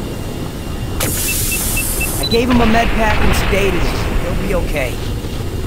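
Steam hisses from a leaking pipe.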